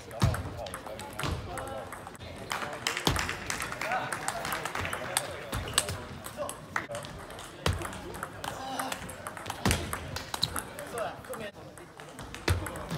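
A table tennis ball clicks back and forth off paddles and a table in a large echoing hall.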